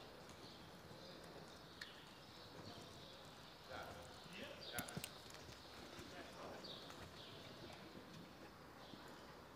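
A horse's hooves trot on soft sand in a large echoing hall.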